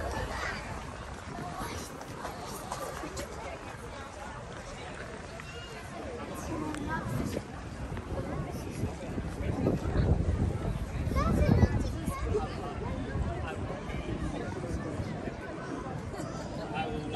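Distant voices of a crowd murmur outdoors.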